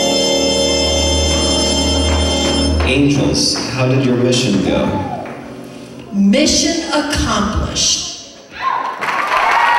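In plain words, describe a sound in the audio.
Loud dance music plays through speakers.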